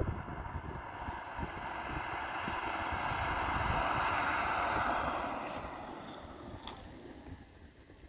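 A car approaches on the road and roars past close by, then fades away.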